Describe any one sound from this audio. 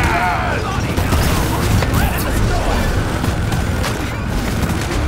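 Explosions boom close by.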